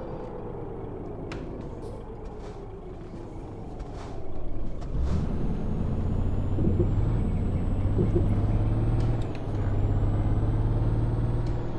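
A bus engine hums and rumbles steadily, rising in pitch as it speeds up.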